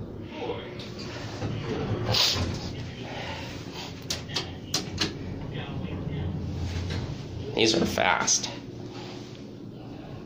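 Elevator doors slide open and shut.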